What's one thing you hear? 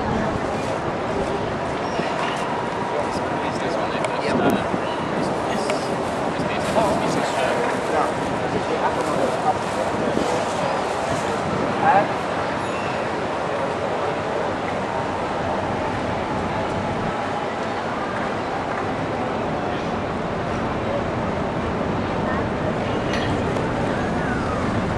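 A crowd murmurs outdoors with distant chatter.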